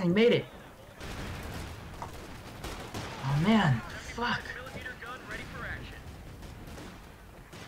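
An explosion booms with rumbling debris.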